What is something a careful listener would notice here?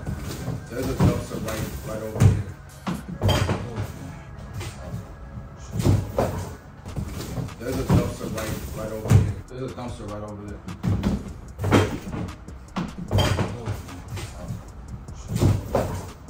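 Cardboard boxes thump and scrape as they are moved.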